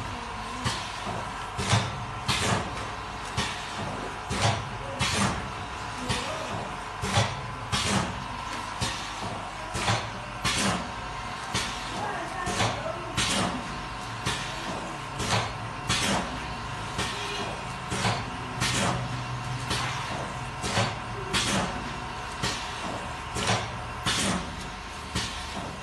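Packing machines clatter and thump in a steady rhythm.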